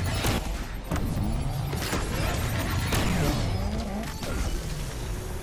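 A sports car engine roars loudly, revving up and down through gear changes.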